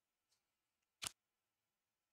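A soft menu click sounds.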